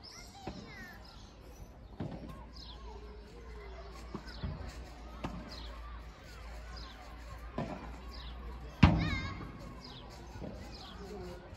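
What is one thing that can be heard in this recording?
A ball bounces on a court.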